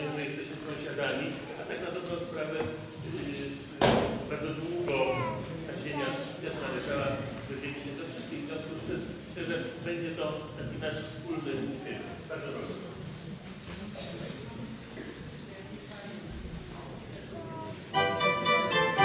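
A crowd of people chatters quietly nearby.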